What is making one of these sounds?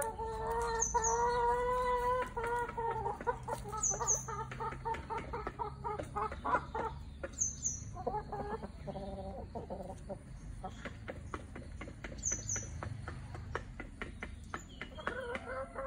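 Hens cluck and croon close by.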